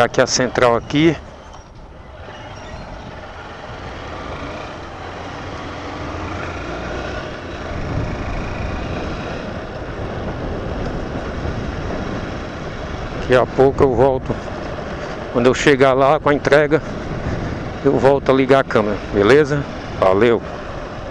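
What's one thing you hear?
A motorcycle engine hums as the bike rides along a street.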